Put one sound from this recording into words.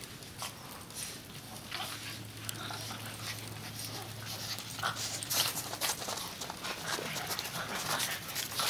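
Small dogs crunch and scamper through snow.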